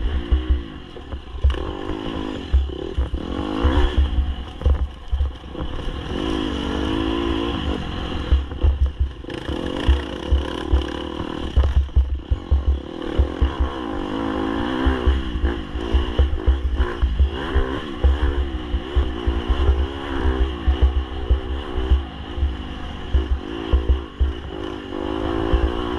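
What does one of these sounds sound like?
A dirt bike engine revs and roars up close, rising and falling in pitch.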